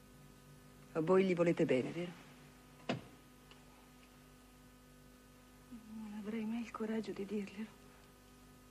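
An older woman speaks calmly and warmly, close by.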